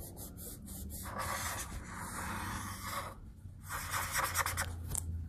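A felt-tip marker squeaks and scratches across paper.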